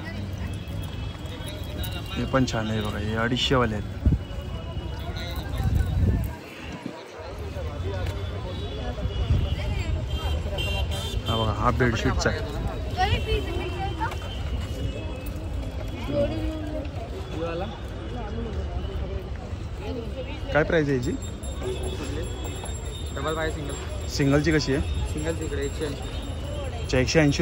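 A busy outdoor crowd murmurs in the background.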